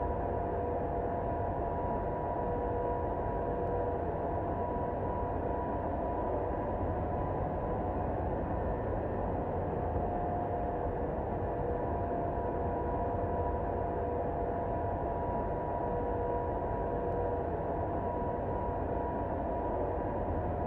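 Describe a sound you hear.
Jet engines drone steadily.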